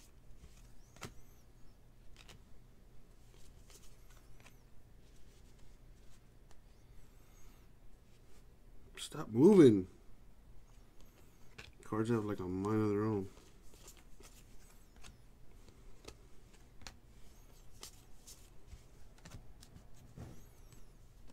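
Trading cards slide and flick against each other in a stack.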